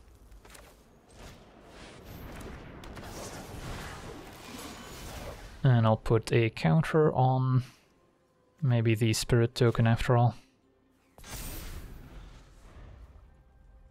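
A magical whooshing effect sweeps and shimmers.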